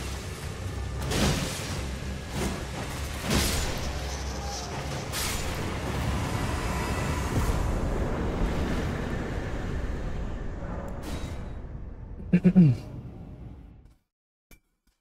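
Game combat sounds clash and boom with deep rumbling music.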